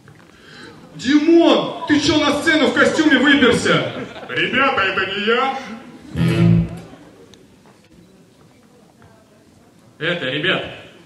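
A group of young men and a young woman sing together a cappella through microphones.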